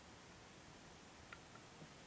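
A plastic stitch marker clicks faintly.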